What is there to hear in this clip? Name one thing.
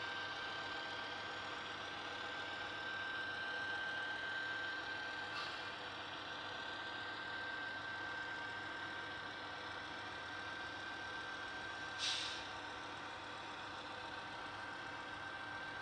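A model train's motor hums with a steady whine as it rolls along the track.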